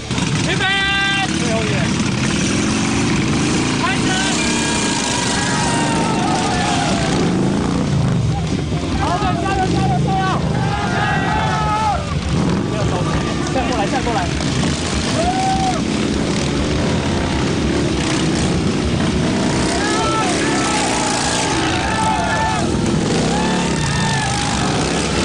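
A crowd of men and women shout encouragement.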